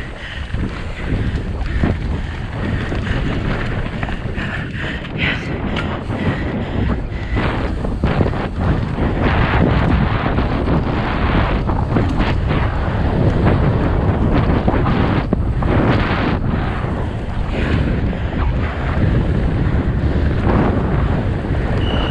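Wind roars loudly past a rider speeding downhill.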